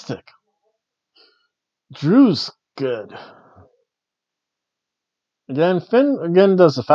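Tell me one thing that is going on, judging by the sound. A middle-aged man reads aloud close by, pausing between phrases.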